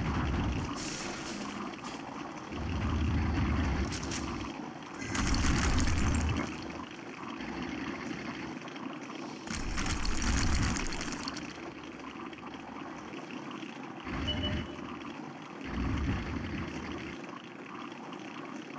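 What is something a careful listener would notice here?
A tank engine rumbles and roars as the tank drives.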